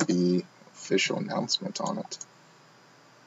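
A young man speaks briefly and close by.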